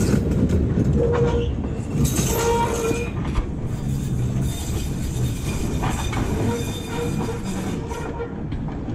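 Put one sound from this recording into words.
Streetcar wheels squeal on a curve of track.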